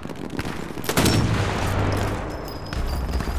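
A rifle fires a single loud, booming shot.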